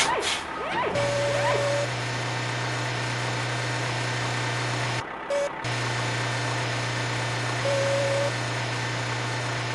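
A toy truck engine hums steadily.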